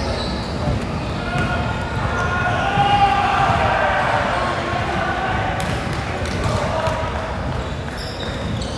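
Young players call out and shout across the court.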